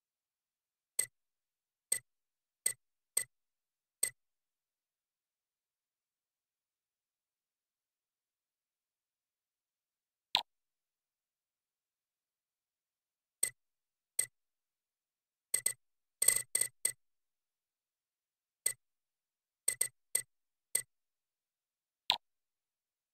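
Short menu clicks tick now and then as a selection moves through a game's settings list.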